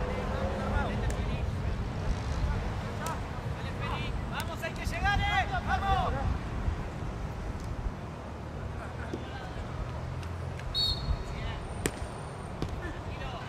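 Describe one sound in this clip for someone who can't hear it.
A hockey stick strikes a ball with a sharp crack.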